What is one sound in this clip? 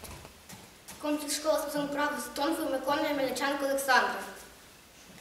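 A young girl speaks loudly and clearly nearby.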